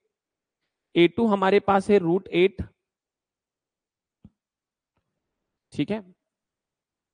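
A man speaks close to a clip-on microphone, explaining with animation, then pauses.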